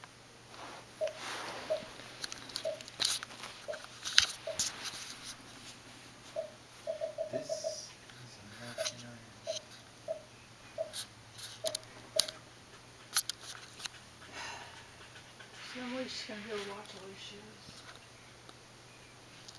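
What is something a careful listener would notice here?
A turtle's claws scratch and tap on carpet.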